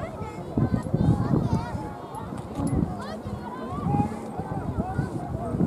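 Children shout and call out in the distance across an open field.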